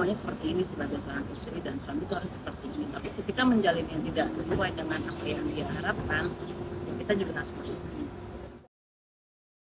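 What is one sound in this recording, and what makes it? A woman speaks calmly into microphones close by, outdoors.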